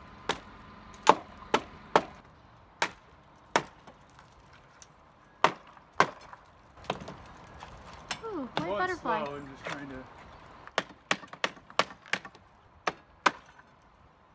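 Sharp metal clicks and snaps come from a hand tool working on a gutter.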